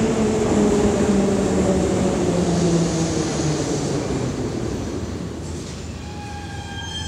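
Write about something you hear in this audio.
A subway train slows down with a falling whine and comes to a stop.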